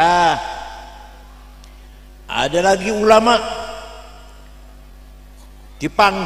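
An elderly man speaks calmly into a microphone, with pauses between phrases.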